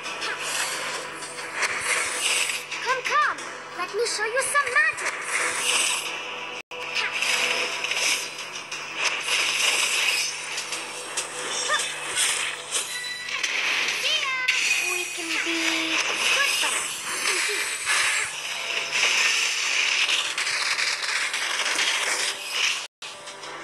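Magical game effects whoosh, zap and chime in quick bursts.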